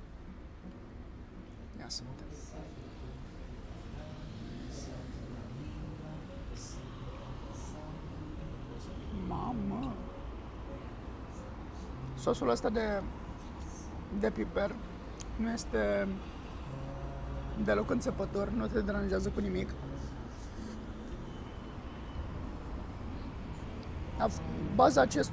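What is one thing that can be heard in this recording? A man cuts food with a knife and fork, the cutlery scraping and clinking on a plate.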